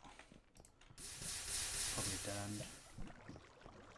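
Lava hisses loudly as water is poured onto it.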